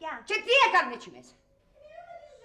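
A middle-aged woman speaks with animation.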